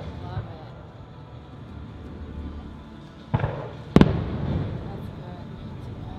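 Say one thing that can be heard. Fireworks crackle and fizz in the sky.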